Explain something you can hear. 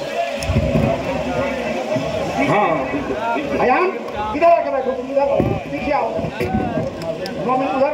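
A man speaks through a loudspeaker with animation.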